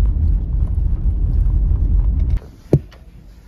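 Tyres rumble along a dirt road.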